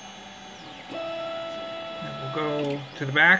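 Stepper motors whine steadily as a printer head moves.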